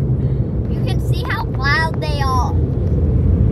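A young girl squeals inside a car.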